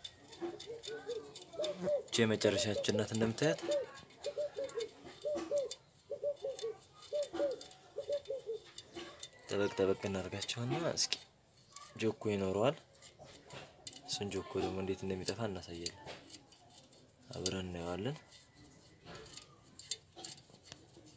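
Metal spokes click and tick as a bicycle wheel is handled.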